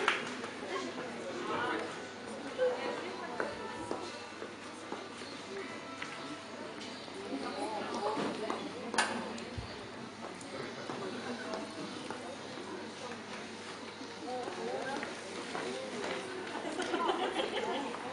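Several adults talk nearby.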